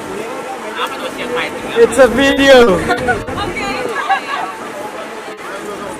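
Young men and women laugh and cheer loudly inside a bus.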